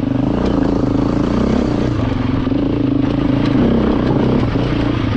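A dirt bike engine revs loudly close by.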